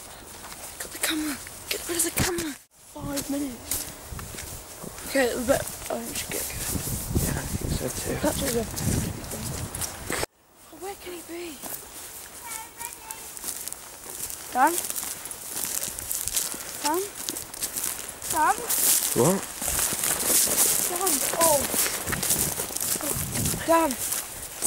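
A teenage boy speaks close by, calmly.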